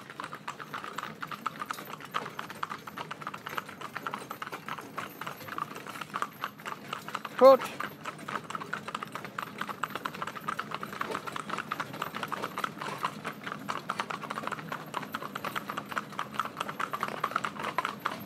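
A carriage rattles and creaks as it rolls along.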